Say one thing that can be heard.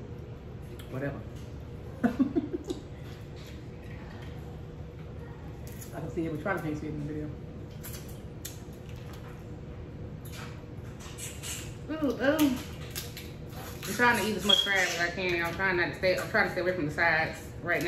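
A young woman chews and slurps loudly.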